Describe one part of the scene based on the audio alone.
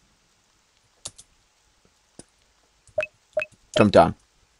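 Short electronic blips sound as menu options are chosen.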